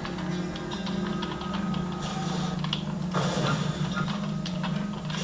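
A low droning game soundtrack plays through small loudspeakers.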